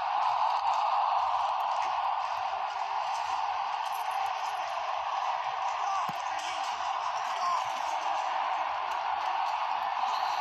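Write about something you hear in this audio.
A crowd roars steadily.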